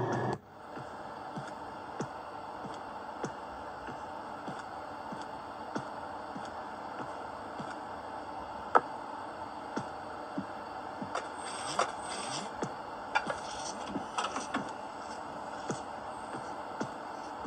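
Game footsteps tap steadily on a hard floor.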